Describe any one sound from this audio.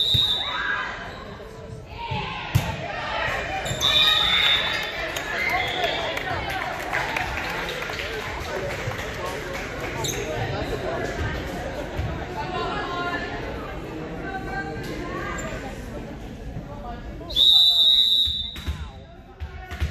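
Young women chatter and call out across a large echoing gym.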